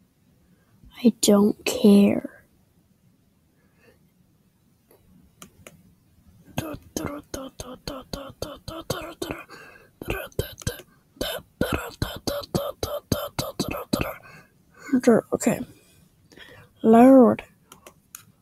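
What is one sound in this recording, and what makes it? A boy talks casually and close to a microphone.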